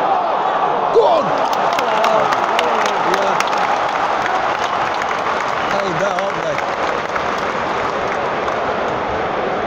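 People in the crowd clap their hands.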